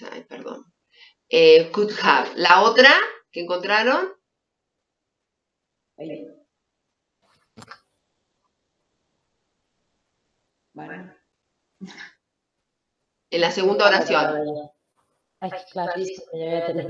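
A middle-aged woman speaks calmly over an online call, with pauses.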